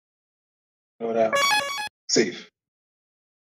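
A bright chime sounds as a game file is saved.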